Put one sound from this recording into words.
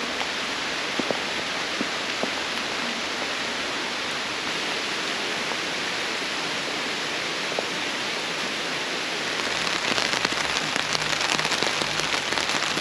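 Steady rain patters on a tarp outdoors.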